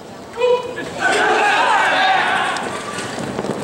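A group of young men shout together loudly outdoors.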